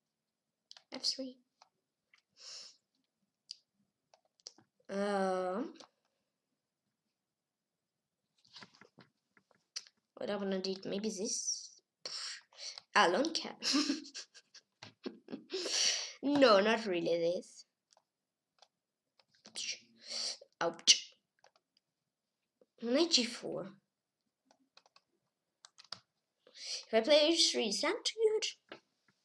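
A boy talks calmly and close to a microphone, in short bursts with pauses.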